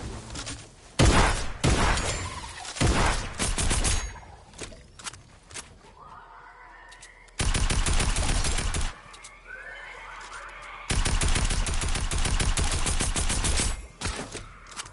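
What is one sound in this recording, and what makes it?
Gunfire rattles in loud rapid bursts.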